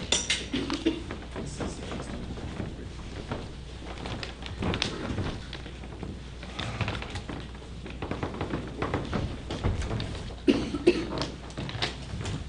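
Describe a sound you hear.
Footsteps shuffle on a carpeted floor.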